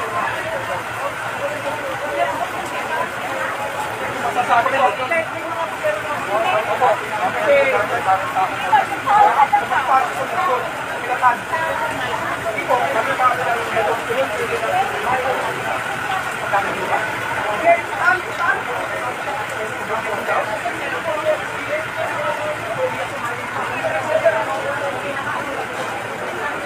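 A crowd of men and women talk and call out over one another close by.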